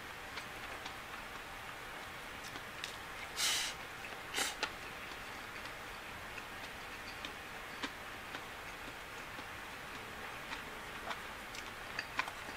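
Chopsticks click and scrape against a bowl.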